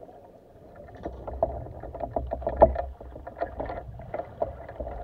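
Spearfishing gear clicks and knocks, muffled underwater.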